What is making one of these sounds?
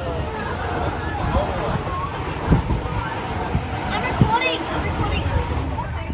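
Another train roars past close by in a rush of wind.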